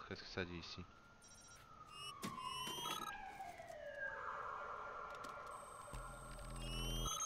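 An electronic device whirs and beeps with a falling tone.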